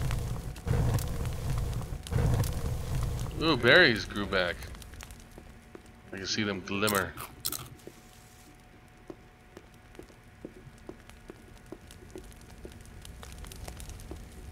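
A torch fire crackles close by.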